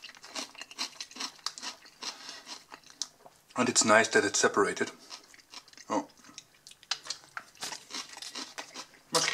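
A thin plastic bowl crinkles and crackles as it is handled.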